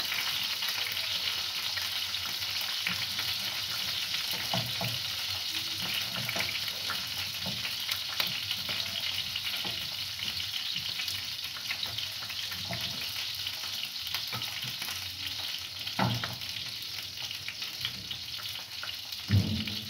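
A knife scrapes and taps against a metal pan.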